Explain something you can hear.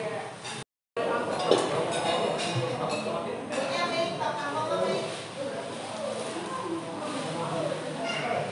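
Adults talk quietly in the background.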